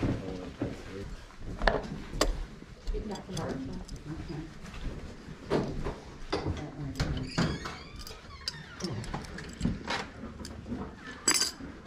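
Small trinkets clink as a hand sorts through them.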